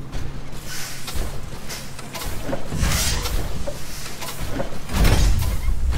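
Heavy mechanical walkers clank and fire at each other with booming blasts.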